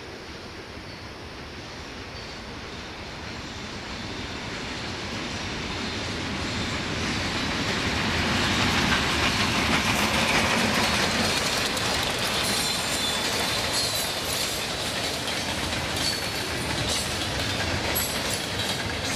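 A freight train approaches with a growing rumble and rolls past close by.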